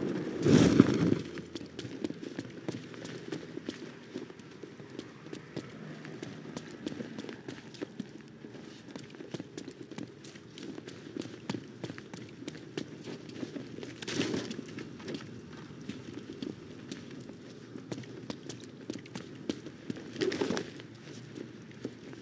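Heavy footsteps clank and thud on wet pavement.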